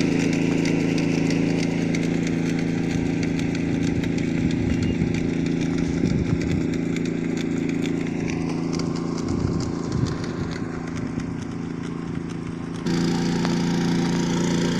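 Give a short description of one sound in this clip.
A small engine chugs steadily nearby.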